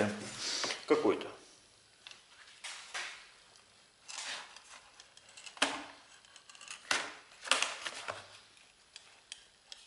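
Thin sheet metal scrapes and rattles as it is bent by hand.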